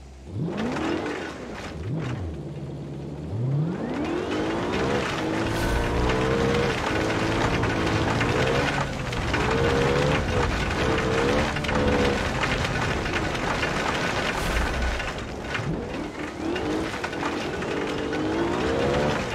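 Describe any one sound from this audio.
Tyres crunch and skid over loose dirt.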